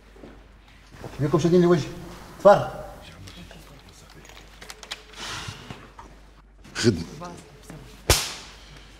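A middle-aged man speaks urgently nearby.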